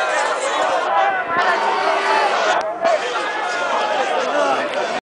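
A large crowd of men sings and chants loudly outdoors.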